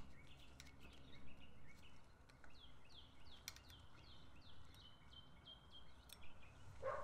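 Small bike parts click and tick as a hand works on them.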